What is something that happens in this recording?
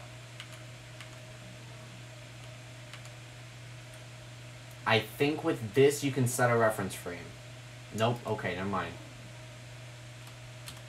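A computer mouse clicks softly now and then.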